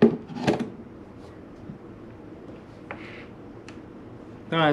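Wooden accordion reed blocks knock and clatter as they are handled.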